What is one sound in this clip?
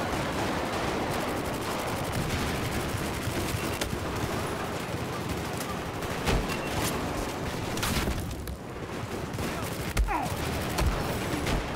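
Rapid gunfire rattles without pause.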